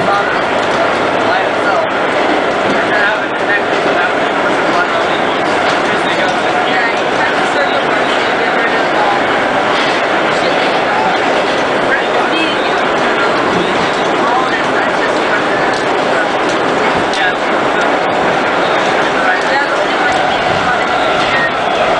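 A subway train rumbles and rattles loudly through a tunnel.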